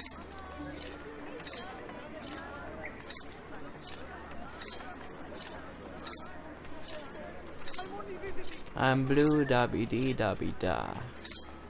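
Footsteps walk steadily on stone paving.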